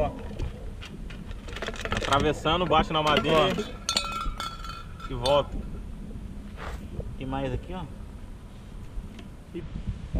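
Metal cans clink and knock together.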